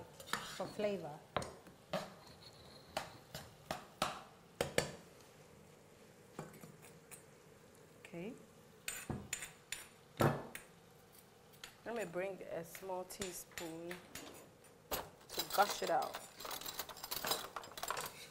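A spoon scrapes and clinks against a cooking pot.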